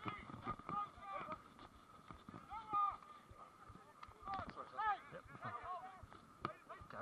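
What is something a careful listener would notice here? Young men shout calls to each other outdoors.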